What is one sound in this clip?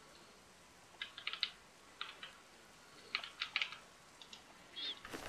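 Menu clicks tick softly in quick bursts.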